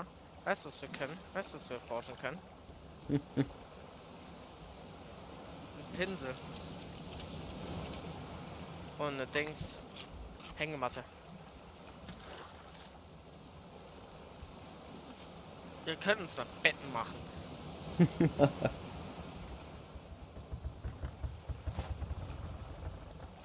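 Gentle waves lap against a wooden raft on open water.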